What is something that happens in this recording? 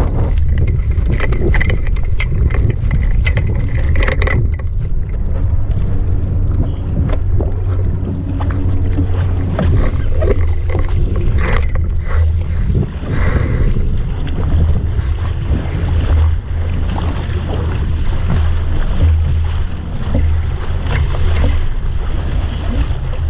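Water splashes and rushes against a small boat's hull.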